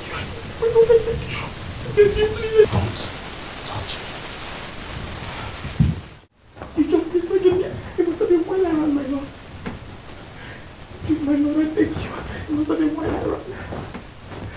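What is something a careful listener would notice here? A young woman sobs and wails close by.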